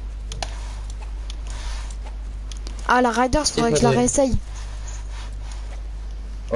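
Game building pieces snap into place with quick clicks.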